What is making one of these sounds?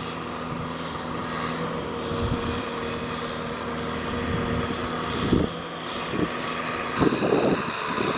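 A tractor engine runs steadily close by.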